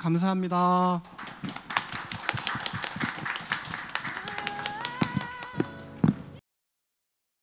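A small group of people applaud.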